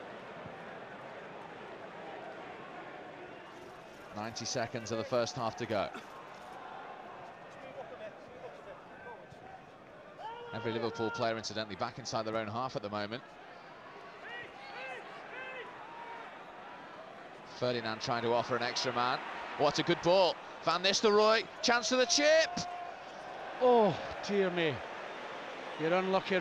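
A large stadium crowd murmurs and chants steadily in the open air.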